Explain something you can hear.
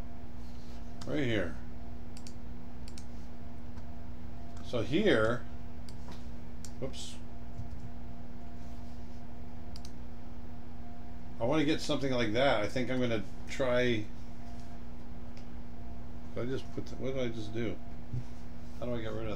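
A middle-aged man talks calmly and casually into a nearby microphone, in short bursts with pauses.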